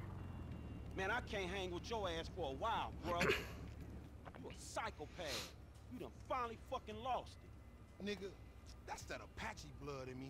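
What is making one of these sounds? A young man speaks angrily and with animation, close by.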